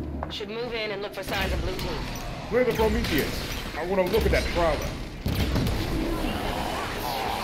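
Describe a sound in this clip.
Gunfire and energy blasts crackle in rapid bursts.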